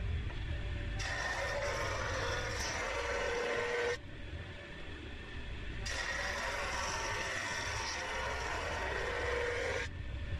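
A wooden board scrapes and hisses across a spinning sanding belt.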